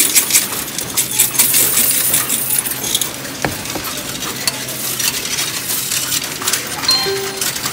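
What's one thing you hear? A coin machine whirs steadily as it counts.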